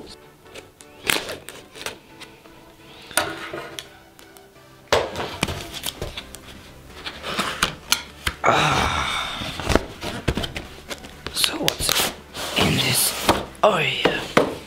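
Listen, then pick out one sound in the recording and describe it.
A cardboard box scrapes and rustles as hands handle and open it.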